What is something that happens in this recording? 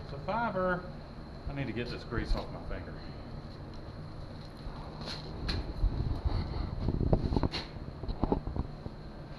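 A man speaks calmly and casually nearby.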